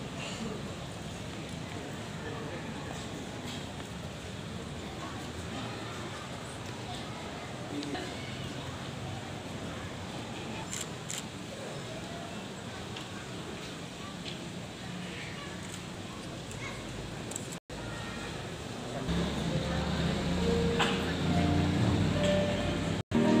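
A large crowd murmurs softly in an echoing hall.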